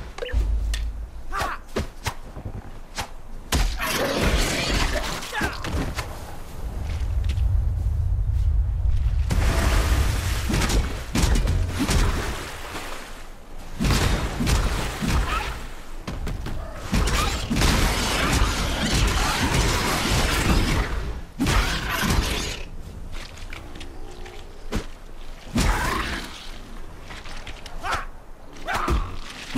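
Creatures screech and snarl in a fight.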